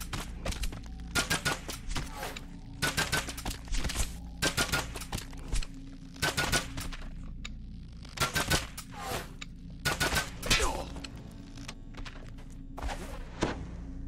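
Footsteps knock on wooden ladder rungs in a steady climb.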